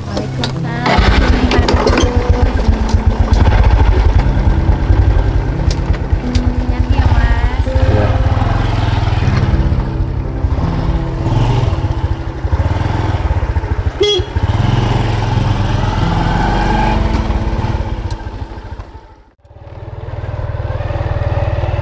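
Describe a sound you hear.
A motorbike engine starts and idles with a steady putter, then rides away.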